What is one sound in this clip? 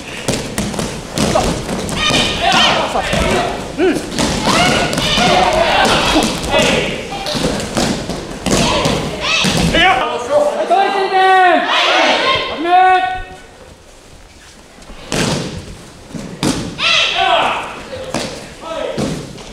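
Bodies thump onto padded mats as people roll and land.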